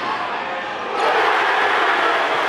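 A large crowd cheers and roars in an echoing gym.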